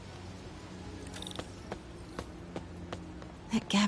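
Footsteps tread through grass.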